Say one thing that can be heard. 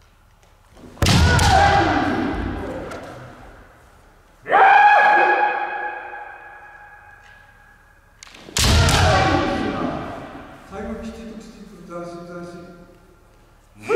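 Kendo fighters let out loud drawn-out shouts that echo through a large hall.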